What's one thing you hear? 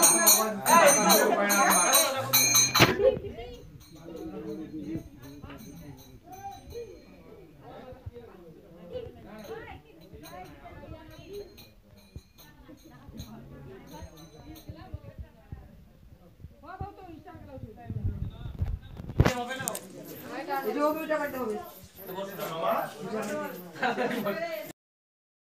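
A crowd of men and women talk and call out nearby.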